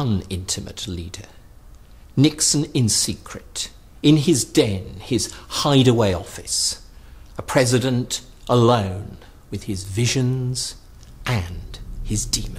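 A middle-aged man speaks calmly and clearly, close to a microphone.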